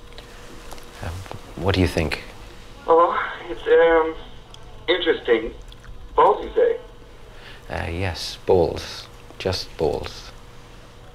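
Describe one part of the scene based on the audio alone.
A man speaks calmly and slowly nearby.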